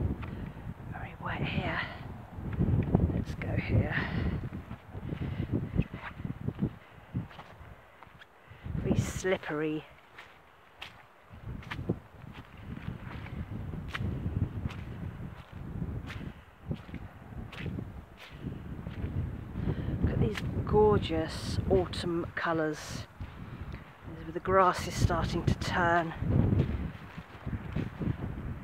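Footsteps squelch through wet grass and mud.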